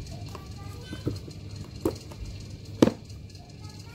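A tablet is handled and knocks a few times against a hard surface.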